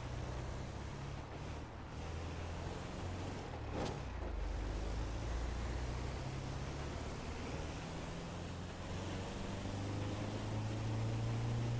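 A car engine hums steadily as the vehicle drives along a road.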